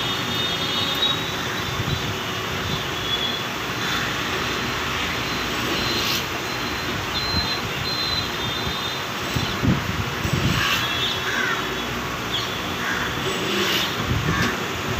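A key cutting machine whirs steadily.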